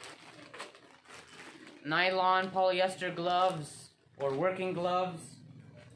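A plastic bag rustles and crinkles.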